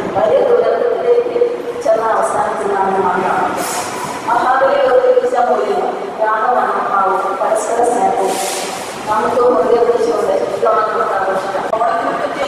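A middle-aged woman speaks steadily into a microphone, heard through a loudspeaker.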